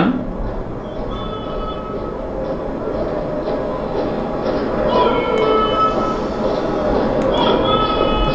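Music from a television broadcast plays through a loudspeaker.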